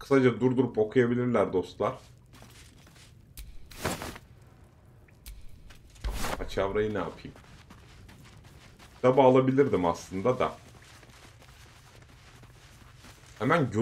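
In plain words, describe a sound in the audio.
A man talks calmly and close into a microphone, in bursts with pauses.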